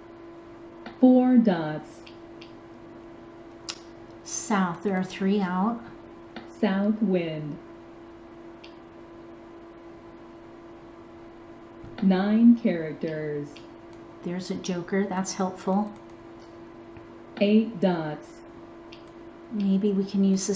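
A woman talks calmly into a microphone.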